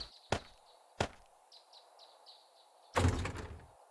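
A wooden box lid thumps shut.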